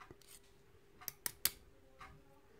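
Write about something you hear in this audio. Metal tweezers click sharply against a small brass lock.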